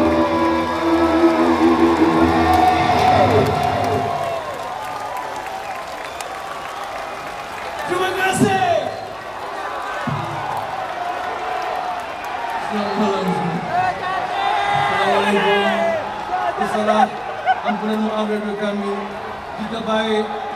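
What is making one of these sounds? A rock band plays loudly through big speakers in a large echoing arena.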